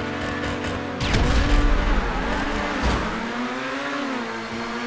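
Many race car engines roar as cars pull away.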